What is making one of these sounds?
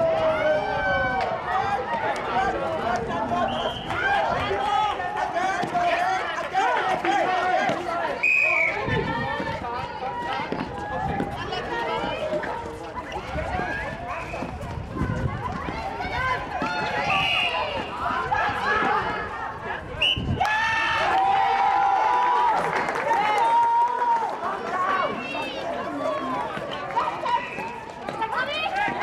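Young women shout and call out to each other across an outdoor court.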